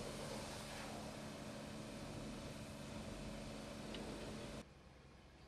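Tyres roll slowly over wet concrete.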